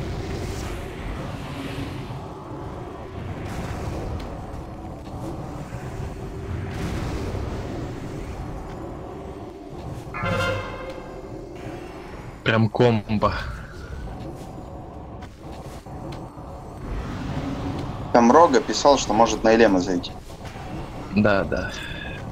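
Spell effects and combat sounds clash and crackle throughout.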